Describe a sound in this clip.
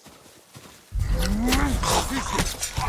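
A sword slashes swiftly through the air.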